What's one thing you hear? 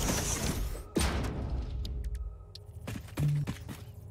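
Short interface clicks sound as a menu opens and closes.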